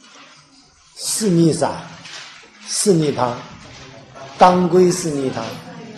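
A man lectures loudly and with animation through a microphone in an echoing room.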